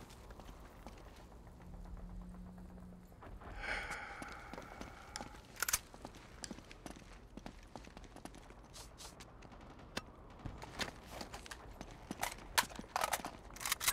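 Footsteps scuff across gravel and rooftops.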